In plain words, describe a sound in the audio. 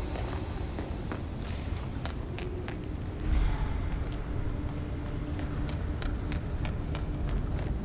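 Footsteps tap on a stone floor at a quick pace.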